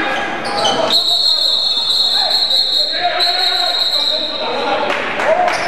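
A referee blows a long, shrill whistle.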